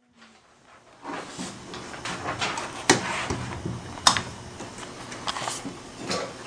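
Metal equipment clanks and knocks as it is adjusted close by.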